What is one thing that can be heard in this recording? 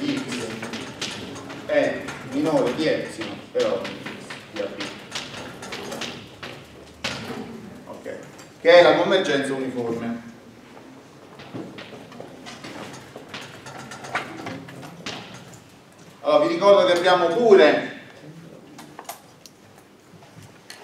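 A middle-aged man speaks calmly in an echoing room.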